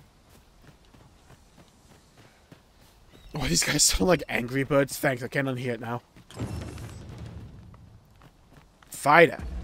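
Footsteps run along a dirt path.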